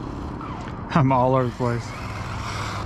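A small remote-control car whines past at speed.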